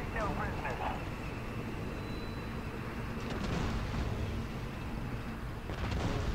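Tank engines rumble low and steadily.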